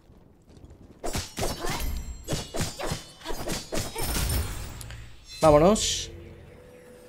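Game spells and hits crack and whoosh in quick bursts.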